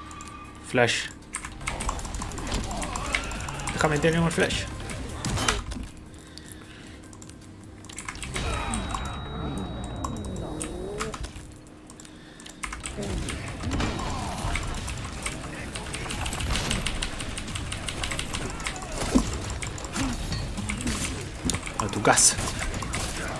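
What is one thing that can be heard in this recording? Gunshots and blasts crack from a video game.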